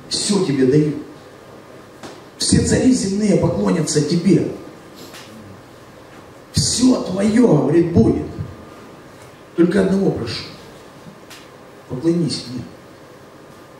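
A man speaks with animation into a microphone through a loudspeaker, in short bursts with pauses.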